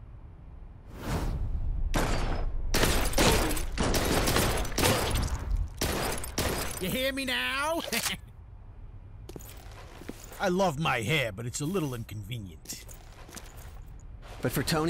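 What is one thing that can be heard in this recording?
Gunshots ring out loudly in quick succession.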